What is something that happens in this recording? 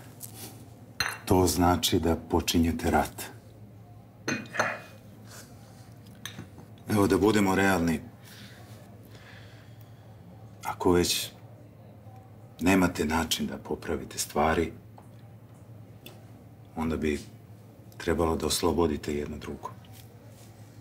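A bearded man speaks calmly and closely.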